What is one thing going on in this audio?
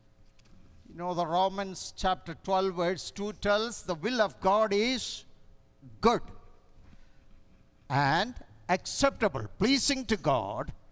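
An elderly man speaks calmly through a microphone and loudspeakers in a large echoing hall.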